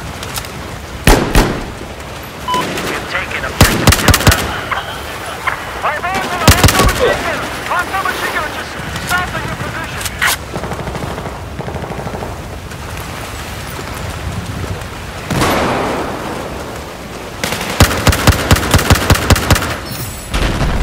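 Rifle shots fire in rapid, loud bursts.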